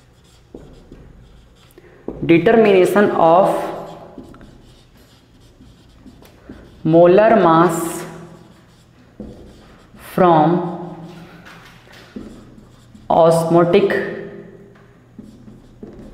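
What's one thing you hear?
A marker squeaks across a whiteboard.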